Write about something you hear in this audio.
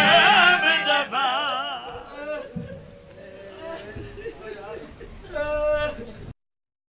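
A man chants a lament loudly through a loudspeaker.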